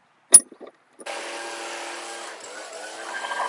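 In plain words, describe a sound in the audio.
A leaf blower runs with a steady roar.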